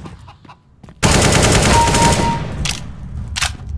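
A rifle fires rapid bursts of loud shots.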